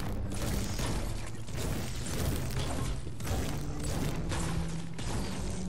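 A pickaxe strikes a stone wall with repeated sharp thuds.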